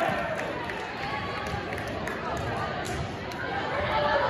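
A volleyball bounces on a wooden floor.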